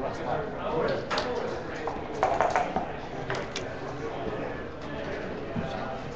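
Game pieces click against a wooden board.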